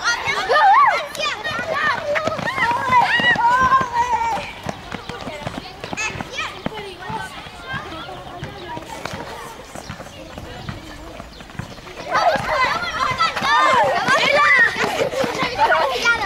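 A group of young children sing together outdoors.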